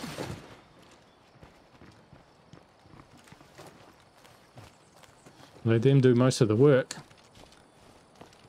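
Footsteps fall steadily on grass and gravel.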